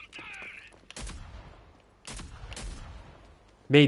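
Gunshots crack from a video game.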